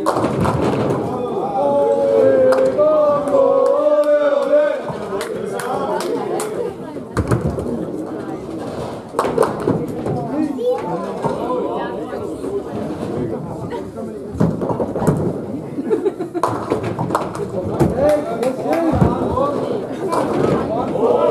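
Heavy balls roll down lanes with a low rumble.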